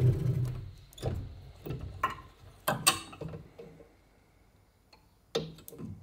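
Wood knocks lightly against a metal table.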